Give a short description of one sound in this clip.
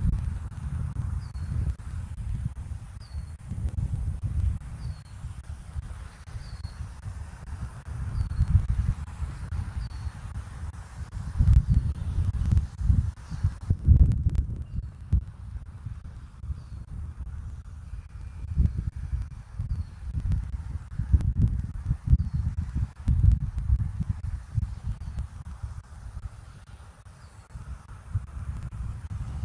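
Wind gusts rumble against the microphone outdoors.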